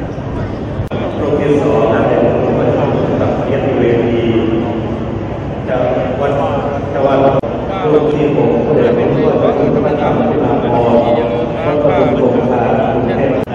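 A group of elderly men chant together through a loudspeaker.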